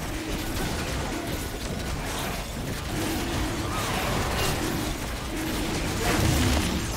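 Magic spells crackle and burst in a fast fantasy battle.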